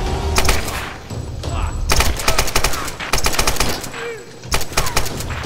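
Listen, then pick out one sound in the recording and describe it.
An assault rifle fires rapid bursts of loud shots.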